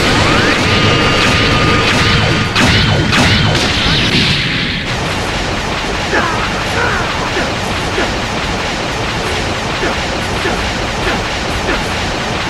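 Energy blasts roar and crackle.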